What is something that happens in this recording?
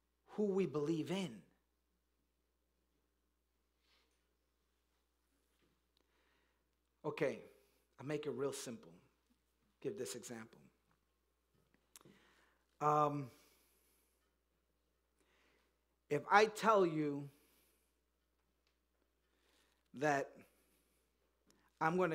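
A man speaks with emphasis through a microphone, in short bursts with long pauses.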